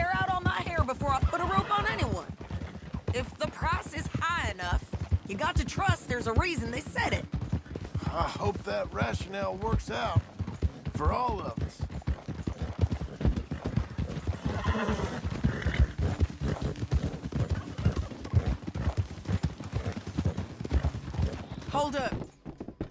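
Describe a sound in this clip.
Horses' hooves clop steadily on a dirt track.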